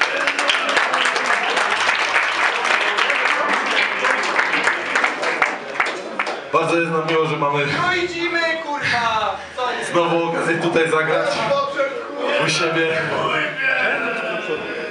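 A crowd of people chatter and shout loudly nearby.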